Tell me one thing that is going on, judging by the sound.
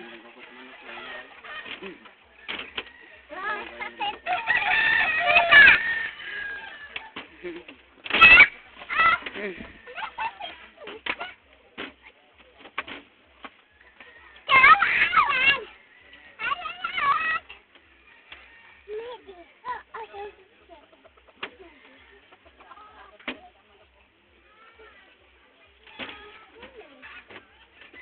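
Young children shout and squeal playfully close by.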